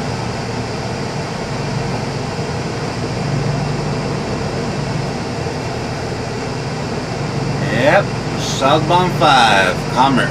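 Tyres drone on asphalt at highway speed, heard from inside the car.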